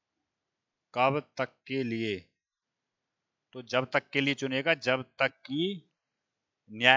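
A man speaks calmly and clearly into a headset microphone.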